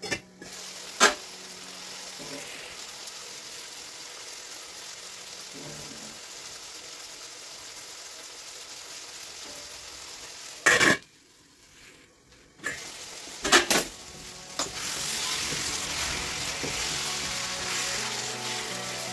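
Meat sizzles in a hot frying pan.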